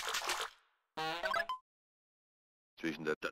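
A short chime sounds as an item is picked up.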